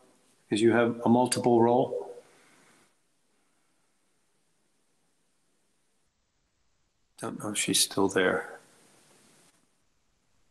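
An older man speaks calmly through an online call, in short bursts.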